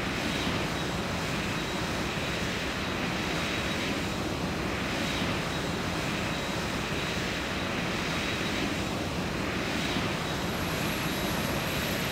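The jet engines of a twin-engine airliner whine at low power while taxiing.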